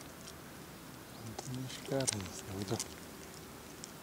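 An animal splashes softly in calm water.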